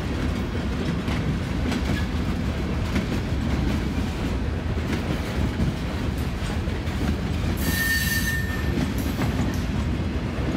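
A freight train rumbles past close by, its wheels clanking over the rail joints.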